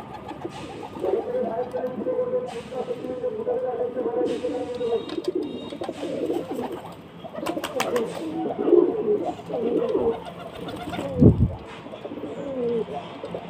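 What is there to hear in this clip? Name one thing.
Pigeons coo in low, rolling calls.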